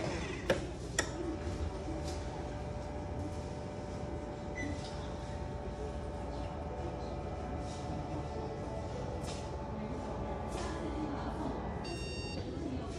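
An electric air pump hums steadily as a blood pressure cuff inflates.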